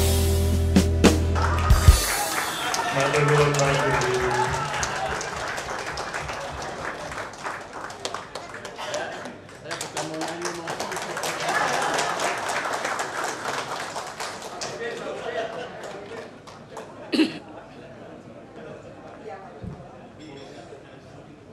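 A crowd of men and women chatters in a large hall.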